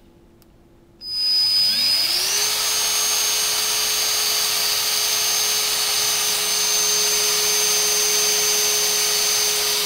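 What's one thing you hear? A battery-powered tool's motor spins up and whirs steadily with a high whine.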